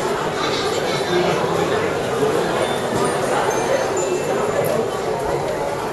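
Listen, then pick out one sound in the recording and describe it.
A crowd of people chatters nearby.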